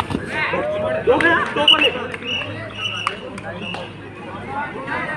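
A man nearby shouts and cheers loudly.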